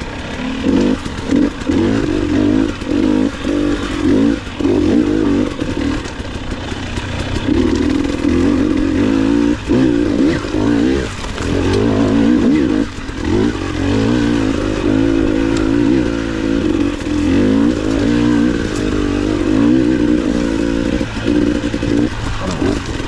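Tyres crunch over rocks and dirt.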